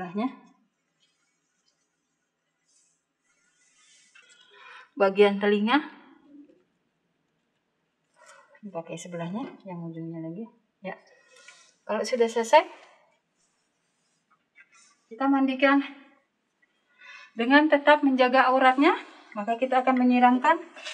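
A woman speaks calmly and clearly, as if explaining, close to a microphone.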